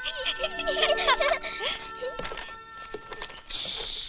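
Young boys laugh loudly and happily close by.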